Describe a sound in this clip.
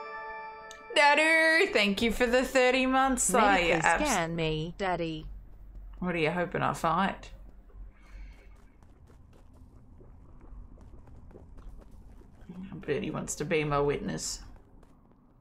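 A young woman speaks with animation into a headset microphone, close by.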